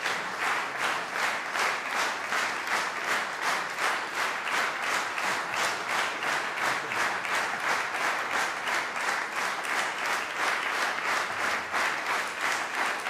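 An audience applauds steadily in rhythmic unison in a large room.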